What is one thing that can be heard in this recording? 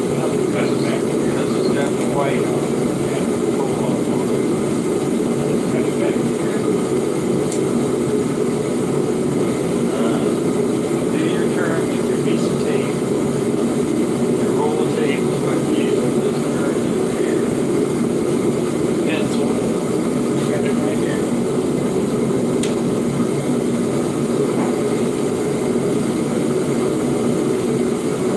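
An elderly man talks casually.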